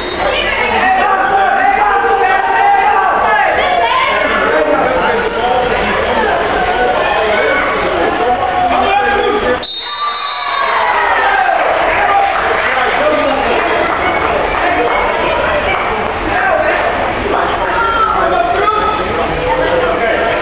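Young boys shout across a large echoing indoor pool hall.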